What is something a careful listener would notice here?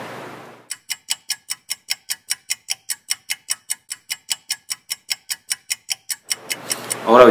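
A metronome ticks quickly and steadily.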